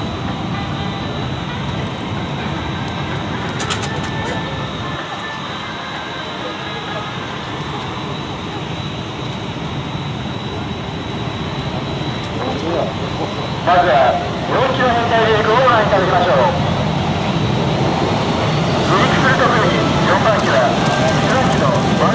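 Jet engines idle with a steady, low roar in the distance.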